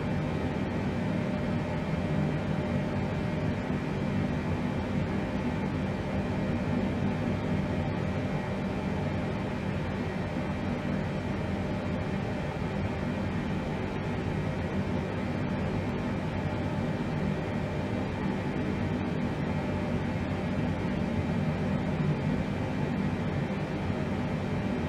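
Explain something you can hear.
Aircraft engines drone steadily.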